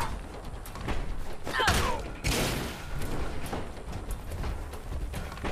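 Heavy metal fists thump hard against a body.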